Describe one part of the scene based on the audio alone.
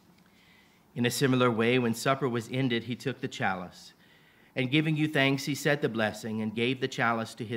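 A man speaks slowly through a microphone.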